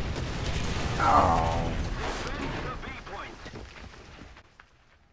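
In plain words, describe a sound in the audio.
A loud explosion booms and slowly fades.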